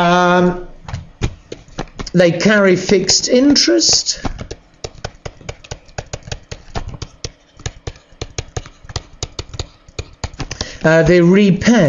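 A pen taps and scratches quickly while writing.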